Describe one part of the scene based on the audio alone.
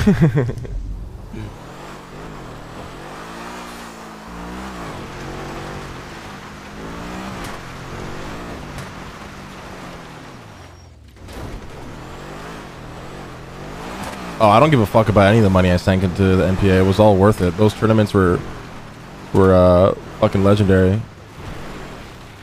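A car engine revs up and down as it drives over rough ground.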